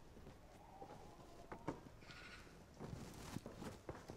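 A door opens and shuts.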